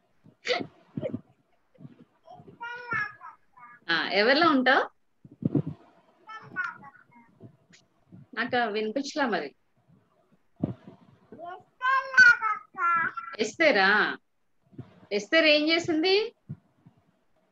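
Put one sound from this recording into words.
A young boy talks excitedly, close up, heard through an online call.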